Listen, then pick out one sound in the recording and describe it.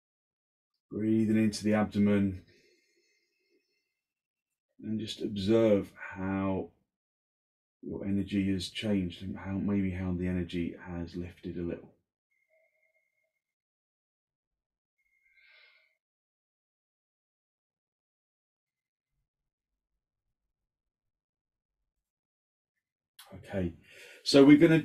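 A man speaks calmly and softly, with long pauses.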